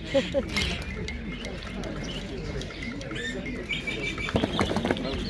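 Small parrots chirp and squawk shrilly.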